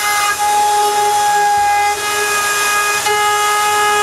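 A router whines loudly while cutting wood.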